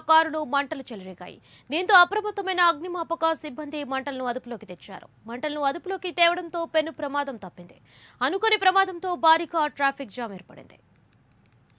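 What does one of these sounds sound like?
A young woman reads out the news clearly through a microphone.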